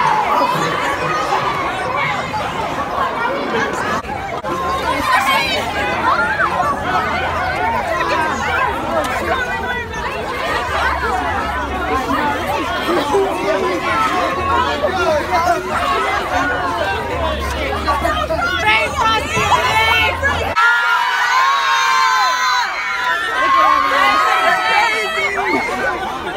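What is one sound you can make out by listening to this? A dense crowd of young people chatters, shouts and screams excitedly close by.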